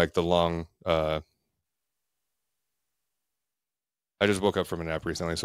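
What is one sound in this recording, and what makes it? A man speaks with animation into a close microphone, in a quiet, deadened room.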